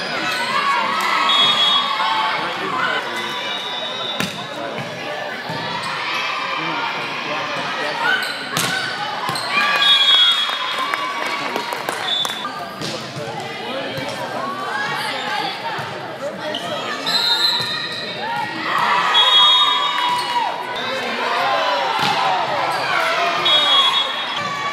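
Young women call out and cheer in a large echoing gym.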